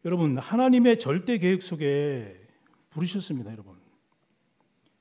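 A middle-aged man speaks with feeling into a microphone in a large echoing hall.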